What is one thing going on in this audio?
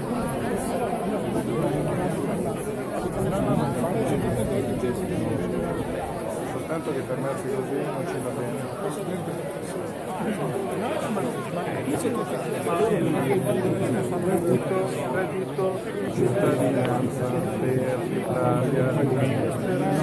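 A large crowd of men and women chatters and calls out nearby, outdoors.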